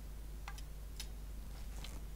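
A wooden bow creaks as its string is drawn.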